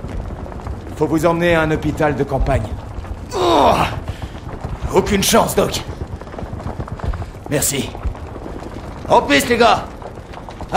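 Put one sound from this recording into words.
Men speak loudly.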